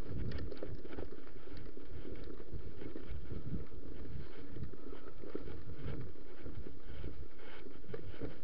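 Bicycle tyres rumble and crunch over a bumpy dirt trail.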